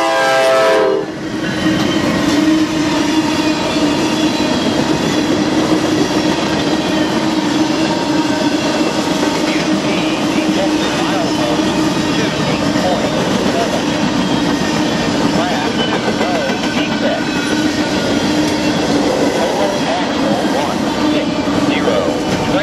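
A freight train rumbles and clatters past close by on the rails.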